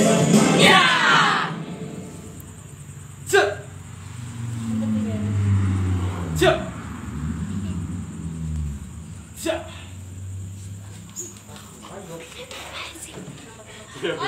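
Bare feet shuffle and thump on a rug.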